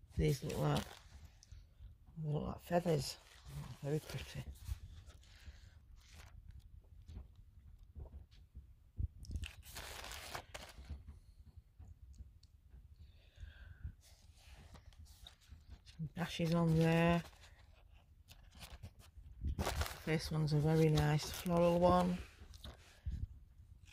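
Sheets of paper rustle and slide as they are handled.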